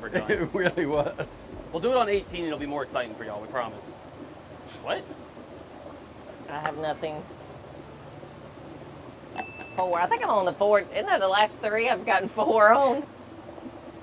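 A young woman talks with animation outdoors.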